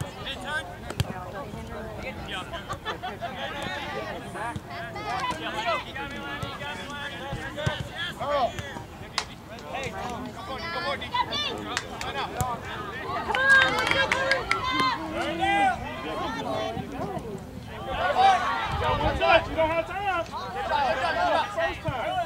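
Players shout to each other across an open field outdoors.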